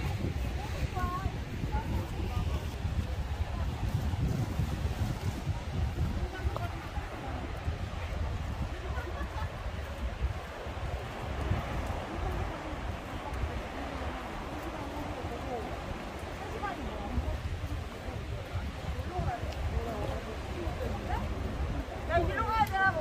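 Waves wash and break against rocks below, outdoors in gusty wind.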